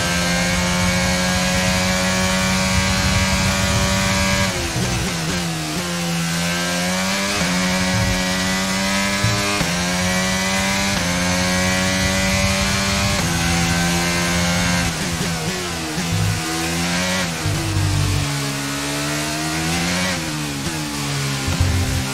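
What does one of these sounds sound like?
A racing car engine screams at high revs, dropping in pitch as it shifts down for corners and climbing again as it speeds up.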